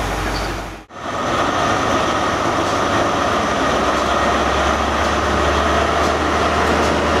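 A diesel locomotive idles with a steady, deep hum.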